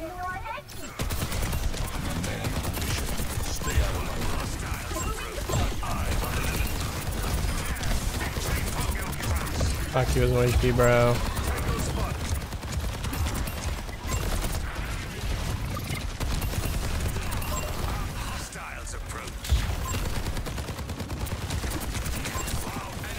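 Rapid energy gunfire crackles and zaps throughout.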